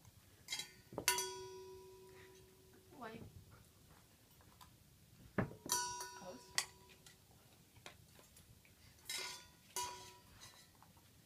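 A dog's nose knocks stainless steel bowls, which clank and ring.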